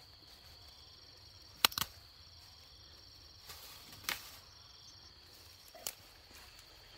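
Plant stems snap as they are picked by hand.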